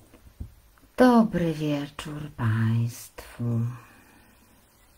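A woman speaks softly and close into a microphone.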